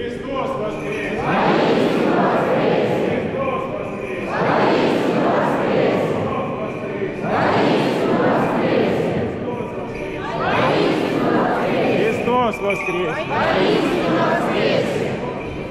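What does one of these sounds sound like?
A crowd of men and women shouts together in reply, again and again.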